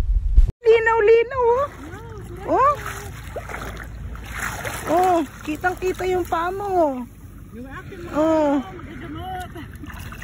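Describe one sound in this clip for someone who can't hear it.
Water splashes around wading legs.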